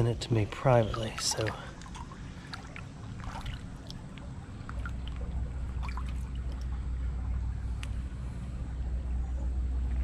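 A gloved hand splashes and scrapes among pebbles in the water.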